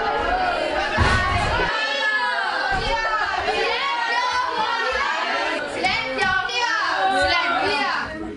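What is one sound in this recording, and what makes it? Several children chatter and talk over each other in a room.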